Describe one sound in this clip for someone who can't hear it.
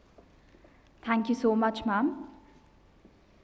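A man speaks briefly through a loudspeaker in a large echoing hall.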